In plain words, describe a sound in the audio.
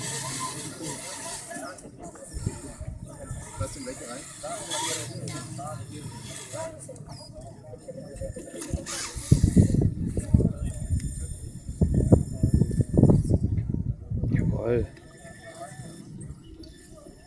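A small robot's electric motors whir as it rolls over soil.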